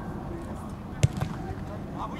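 A football is kicked hard with a dull thud.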